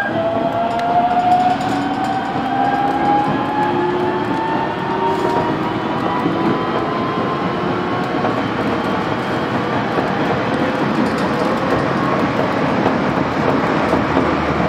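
A train rumbles steadily along the tracks, with a slowly rising whine.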